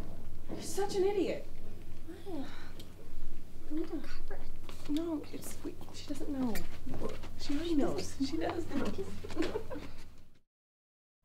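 Young women talk with animation nearby.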